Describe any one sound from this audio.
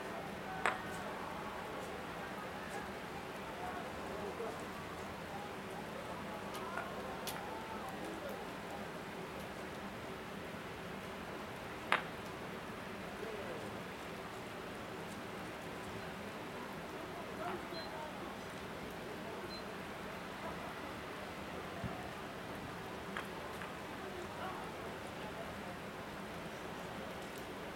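A crowd of people talks at a distance in the open air.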